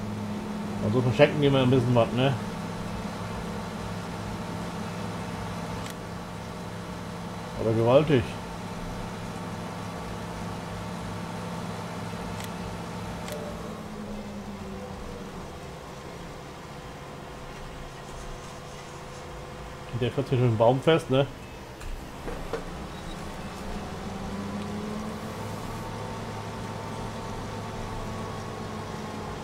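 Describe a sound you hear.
A harvester engine drones steadily.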